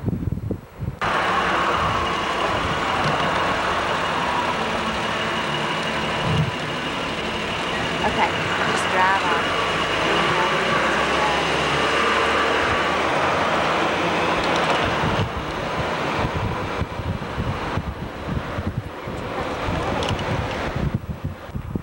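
Wind rushes loudly past an open car window.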